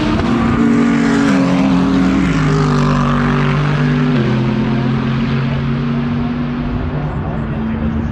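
Racing car engines roar loudly past at high speed, shifting gears and slowly fading away.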